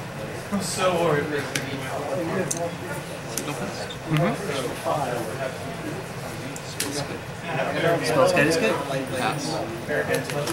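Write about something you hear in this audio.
Playing cards tap softly onto a table.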